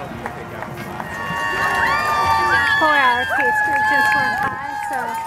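A crowd of spectators cheers and whoops outdoors.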